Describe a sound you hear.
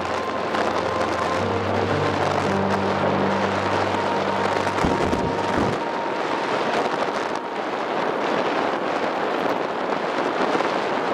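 Tyres roll on a road with a steady rush.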